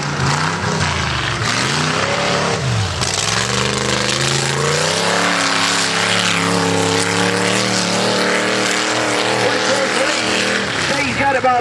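A mud bog truck's engine roars at full throttle through a mud pit, far off.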